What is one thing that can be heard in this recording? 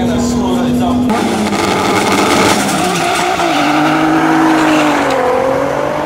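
Racing car engines rev loudly and roar as the cars launch.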